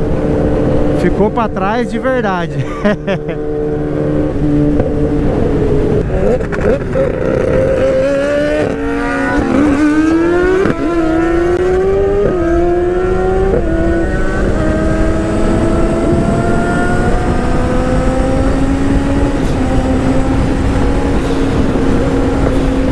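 A motorcycle engine roars and revs up through the gears.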